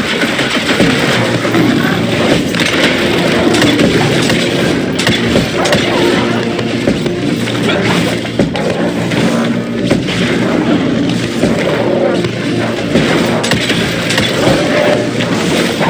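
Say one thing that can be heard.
An electric beam crackles and buzzes in bursts.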